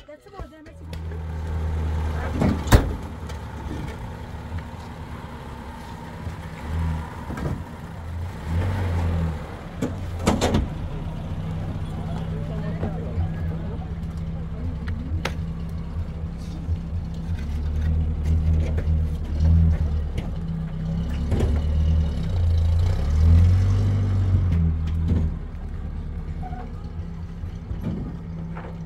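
A truck engine rumbles steadily and revs now and then.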